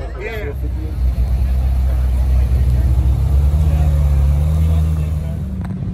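A sports car drives slowly past, its engine growing louder.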